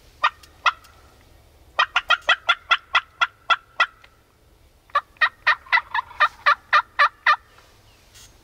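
A man blows a turkey call in quick bursts of sharp yelps.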